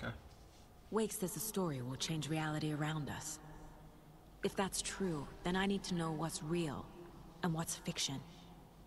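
A young woman speaks calmly and seriously.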